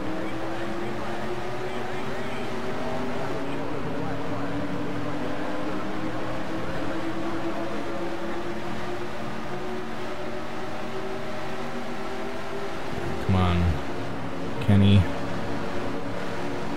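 Race car engines roar steadily, rising in pitch as the cars speed up.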